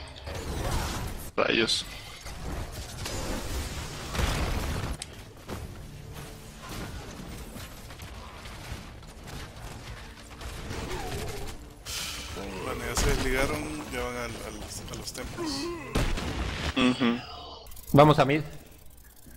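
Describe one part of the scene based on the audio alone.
Spells and weapons clash with bursts and blasts in a game battle.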